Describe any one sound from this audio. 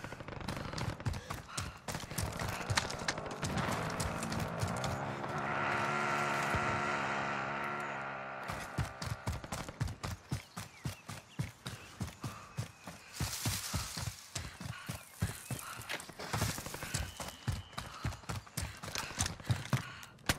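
Quick footsteps crunch over rough ground.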